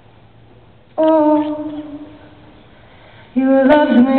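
A young woman sings through loudspeakers in a large, echoing hall.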